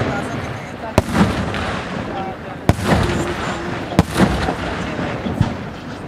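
Fireworks burst with sharp loud bangs.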